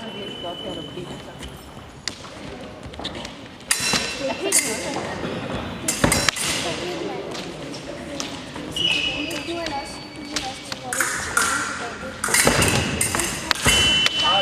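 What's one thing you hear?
Sneakers squeak and thud on a hard floor as fencers lunge.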